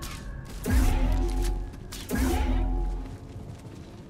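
Heavy explosions boom.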